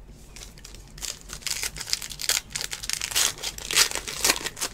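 Plastic wrapping crinkles as hands tear open a pack.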